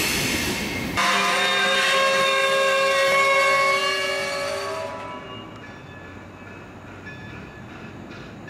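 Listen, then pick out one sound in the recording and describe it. A freight train rolls past on the tracks.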